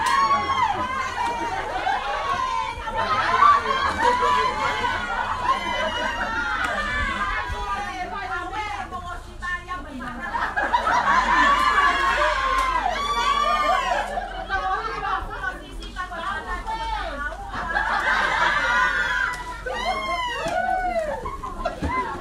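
A crowd of women and men sing loudly nearby.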